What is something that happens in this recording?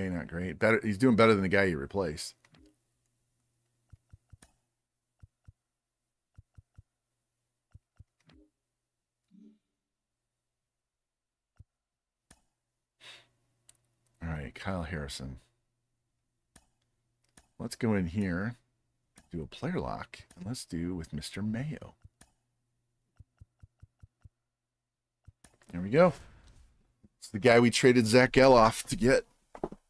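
A middle-aged man talks calmly into a close microphone, in short bursts.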